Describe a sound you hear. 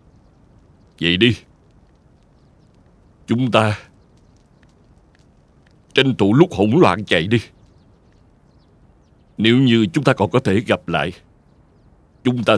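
A middle-aged man speaks in a low, serious voice, close by.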